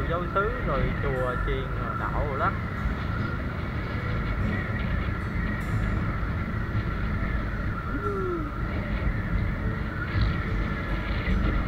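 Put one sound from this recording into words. A motorbike engine hums while riding along a road.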